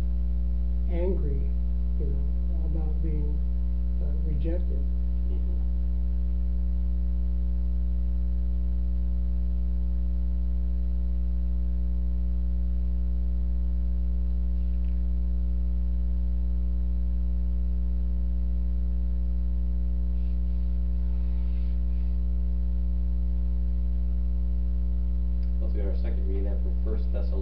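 A man speaks calmly, close by, in short bursts.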